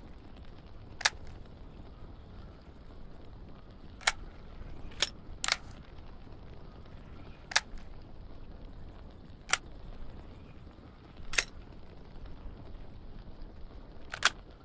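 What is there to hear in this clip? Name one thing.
Sharp metallic clicks sound as gun parts are swapped, every few seconds.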